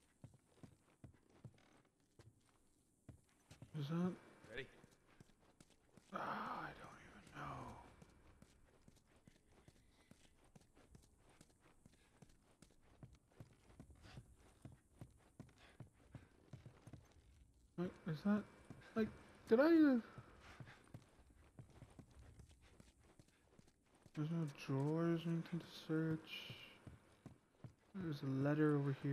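Footsteps tread slowly across a floor.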